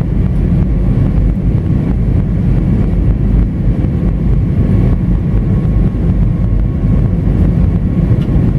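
A jet engine drones with a steady, deep roar.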